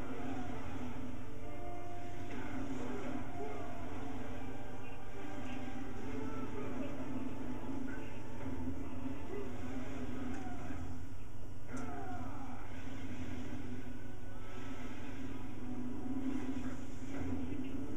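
Video game explosions and blasts boom through a television speaker.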